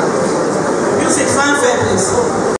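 A middle-aged woman speaks into a microphone, heard through loudspeakers.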